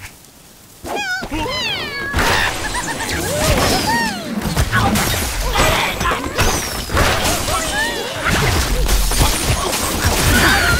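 Cartoon birds squawk in high, sliding chirps.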